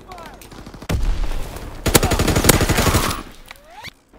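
Gunfire bursts out in loud rapid shots.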